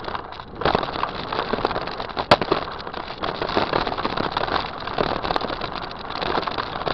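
Bicycle tyres roll fast over packed dirt.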